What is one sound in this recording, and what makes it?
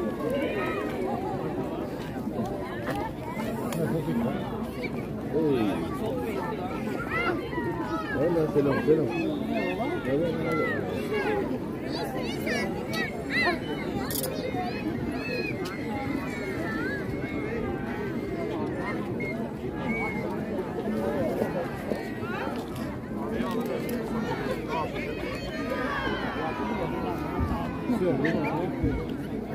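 A large outdoor crowd of men, women and children chatters and murmurs all around.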